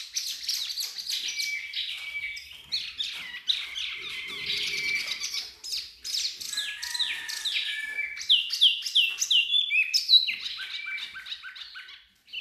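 A small bird sings a rapid, varied song of chirps and trills.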